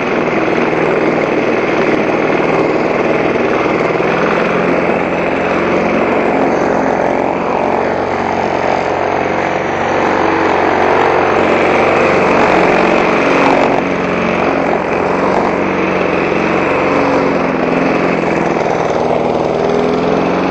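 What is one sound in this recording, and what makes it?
A petrol lawn mower engine drones loudly and steadily close by.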